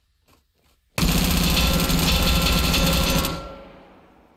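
A submachine gun fires a long, loud automatic burst that rings out and fades.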